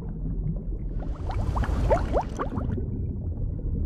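Bubbles gurgle and rise in water.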